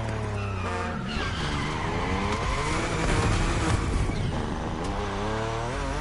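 Tyres screech as a car drifts around a bend.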